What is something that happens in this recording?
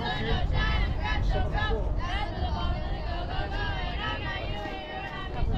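Young women call out and chatter across an open field.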